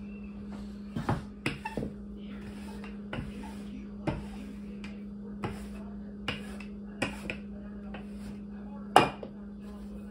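A wooden rolling pin knocks and rolls over dough on a wooden table.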